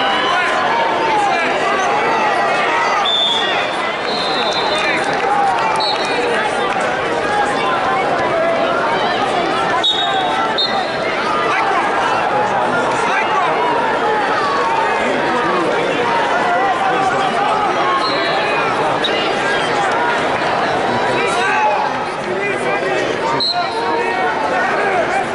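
A large crowd cheers and shouts throughout a big echoing hall.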